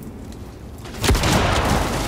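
A submachine gun fires a rapid burst.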